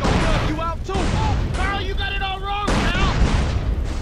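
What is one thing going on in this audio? A rocket launcher fires with a whoosh.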